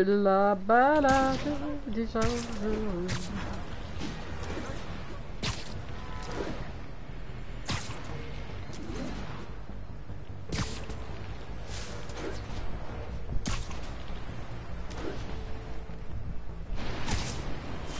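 Webs shoot with sharp, repeated swishes.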